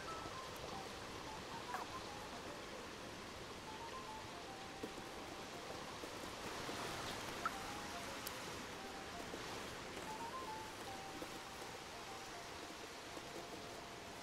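A cat's paws pad softly on wooden boards.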